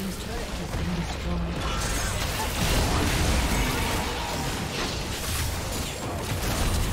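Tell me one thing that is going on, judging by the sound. Magic blasts and clashing weapons crackle and boom in a busy battle.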